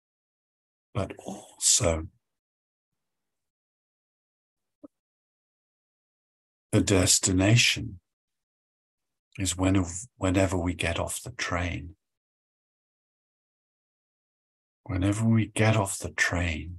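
An older man speaks calmly through an online call, in short bursts with pauses.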